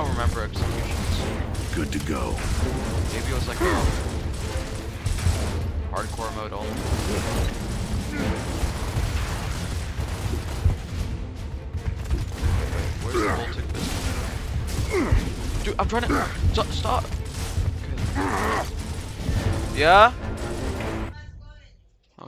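Low rumbling effects and explosions boom steadily.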